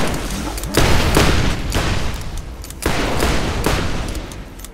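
A gun fires loud blasts.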